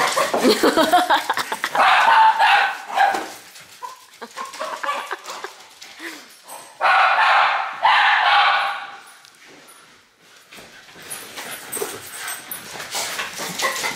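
Dog paws patter across a wooden floor.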